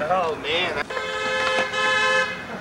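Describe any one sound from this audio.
A skateboard clacks against the road.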